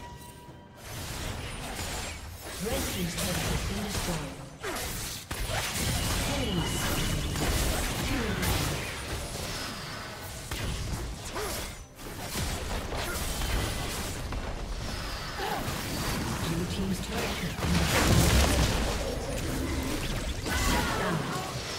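Magic spell effects whoosh and crackle as game characters fight.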